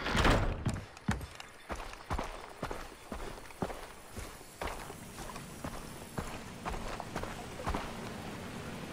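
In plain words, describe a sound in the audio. Footsteps crunch on gravel and grass.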